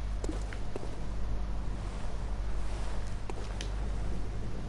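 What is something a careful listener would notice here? Footsteps scrape and tap on loose stones.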